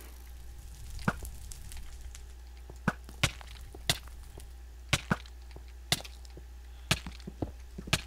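A bow shoots arrows with short sharp snaps.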